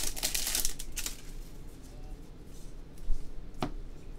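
Plastic card wrappers crinkle and rustle as a pack is torn open.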